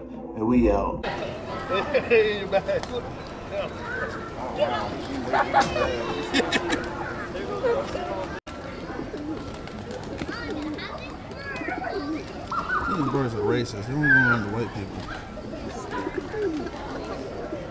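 People chatter outdoors nearby.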